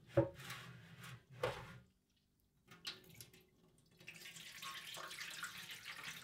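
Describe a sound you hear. A ceramic dish knocks and scrapes against a metal sink.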